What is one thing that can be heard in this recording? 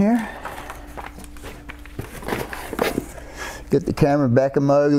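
Plastic packaging rustles and crinkles as it is handled.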